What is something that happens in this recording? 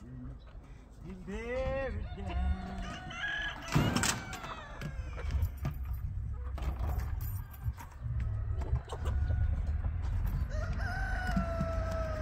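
A metal cage rattles and clanks.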